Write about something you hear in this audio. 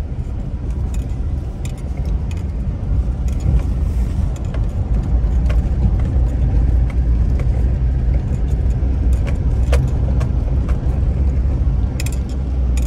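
A car engine hums steadily from inside the car as it drives slowly.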